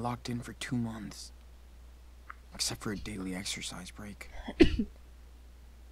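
A young woman talks with animation close to a headset microphone.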